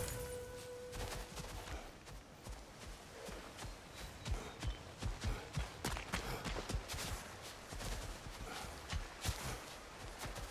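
Heavy footsteps tread steadily over soft ground.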